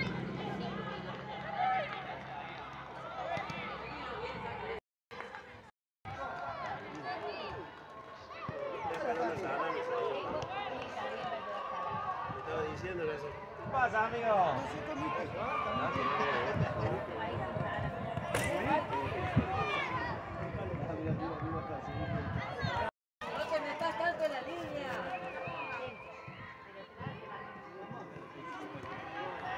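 Adults call out and cheer close by.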